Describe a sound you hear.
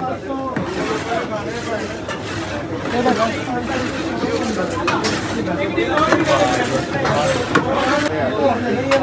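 A metal spatula scrapes and stirs through a thick mixture in a large metal pot.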